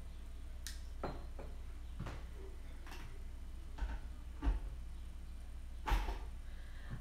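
Glass clinks against glass.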